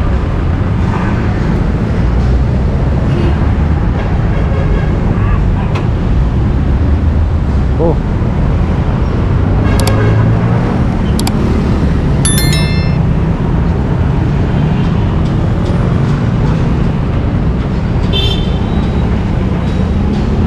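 City traffic rumbles steadily outdoors, with engines idling and passing.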